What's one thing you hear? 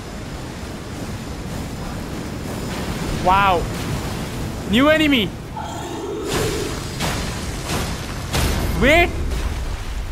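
Fire bursts and roars in explosions.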